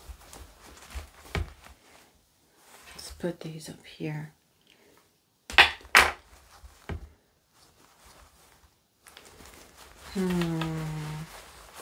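Cotton wool rustles softly in a woman's hands.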